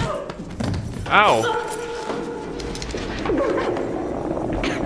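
A woman screams in alarm.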